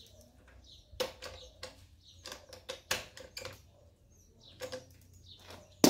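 A metal wrench clicks and clanks against a bicycle part.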